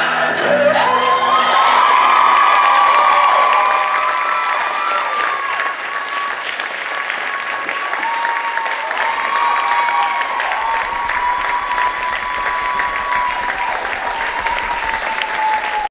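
People in a crowd whistle loudly.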